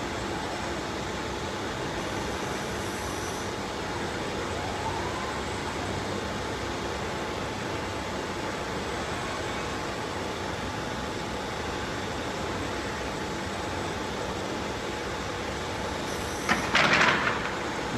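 Robotic arms whir as they move.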